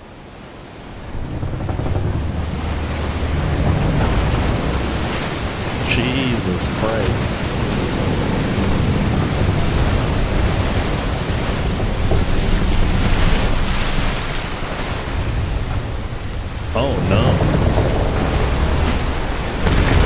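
Huge waves crash and roar.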